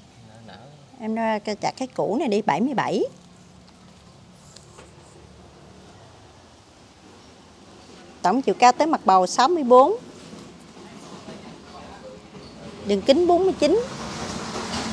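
A middle-aged woman speaks calmly and close by in short bursts.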